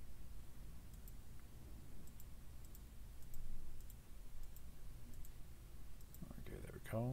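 Soft interface clicks tick several times.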